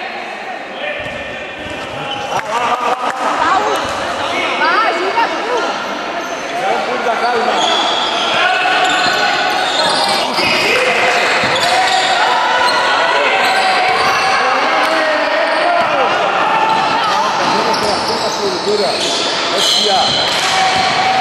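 Teenage boys shout and call out to each other across the court.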